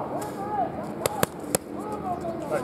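Punches smack sharply against padded mitts.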